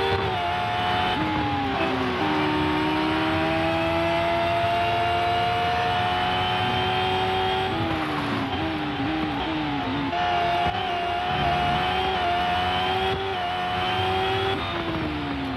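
A racing car engine in a video game screams at high speed, its pitch dropping at each gear shift.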